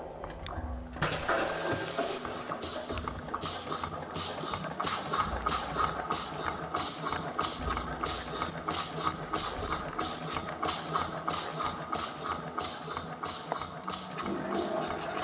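A machine clanks in a steady, rapid rhythm in a large echoing hall.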